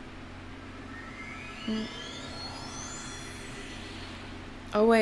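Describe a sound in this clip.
A shimmering magical chime rises in pitch.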